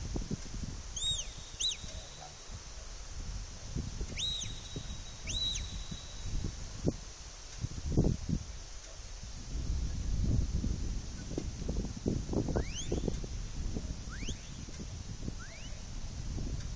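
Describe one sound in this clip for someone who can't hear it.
A man blows sharp, high whistles in short bursts, outdoors at a distance.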